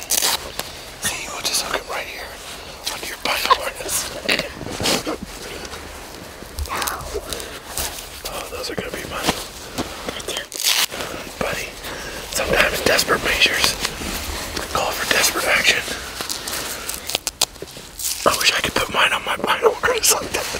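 Outdoor clothing rustles and scrapes close by.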